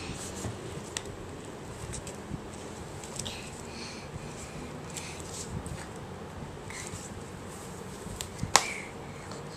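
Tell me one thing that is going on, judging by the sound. A toddler taps on a box.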